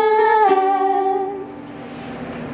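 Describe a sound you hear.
A ukulele is strummed softly.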